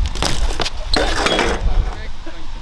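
A bike and rider crash and scrape onto concrete.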